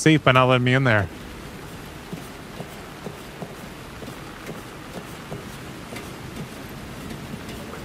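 Footsteps clank softly on a metal ladder.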